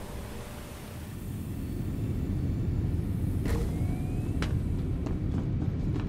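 A low mechanical rumble hums steadily and slowly grows louder.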